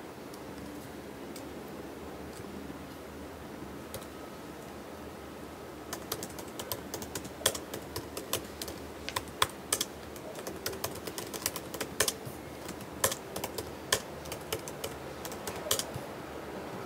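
Fingers tap quickly on a laptop keyboard with soft, crisp clicks.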